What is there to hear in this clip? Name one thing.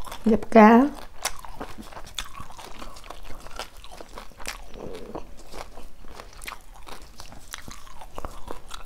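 A woman chews and smacks her lips close to a microphone.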